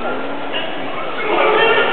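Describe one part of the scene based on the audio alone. A large crowd cheers loudly as the wrestlers clash.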